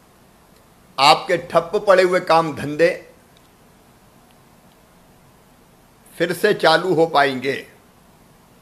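A middle-aged man speaks calmly and firmly into a microphone, with pauses.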